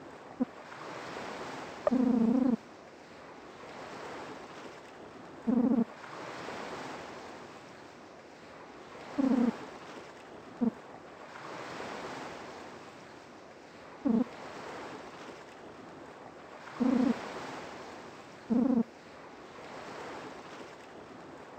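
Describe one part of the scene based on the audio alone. Gentle waves wash and swell in slow cycles.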